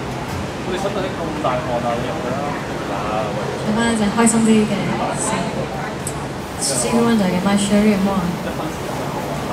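A woman sings into a microphone through a loudspeaker.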